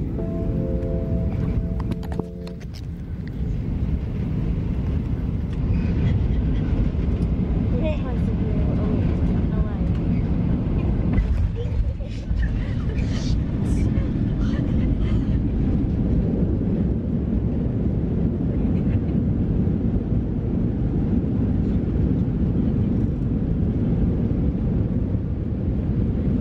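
A jet engine roars steadily inside a plane cabin.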